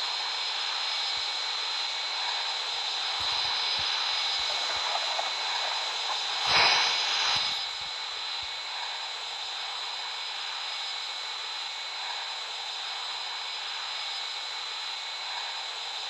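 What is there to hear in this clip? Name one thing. A jet engine whines steadily.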